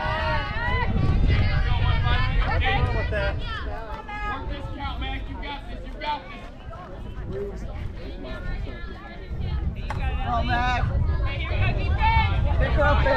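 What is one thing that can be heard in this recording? Young women call out and chatter on a field.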